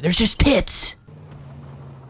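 A young man speaks excitedly into a close microphone.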